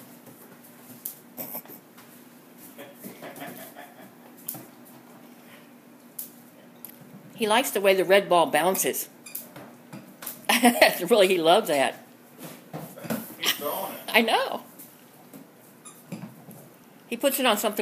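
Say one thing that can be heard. A dog's claws click and patter on a wooden floor.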